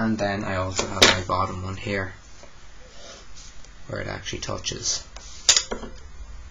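A plastic set square taps and slides on paper.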